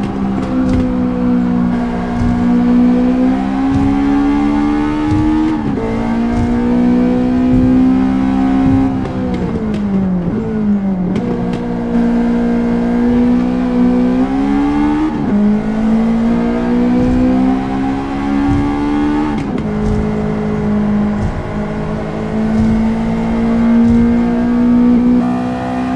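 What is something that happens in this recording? A car engine revs loudly, rising through the gears and dropping between shifts.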